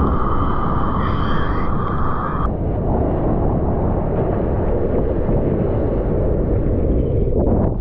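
Water laps and sloshes close by.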